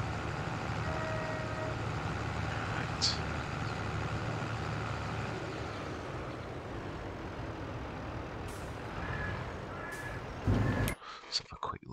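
A tractor engine rumbles steadily as it drives.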